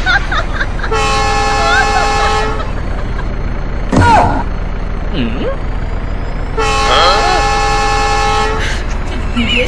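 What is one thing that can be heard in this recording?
A steam train whistle blows loudly.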